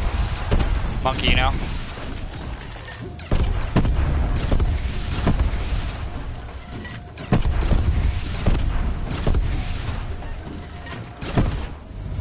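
A heavy gun fires in loud, booming blasts with short pauses between them.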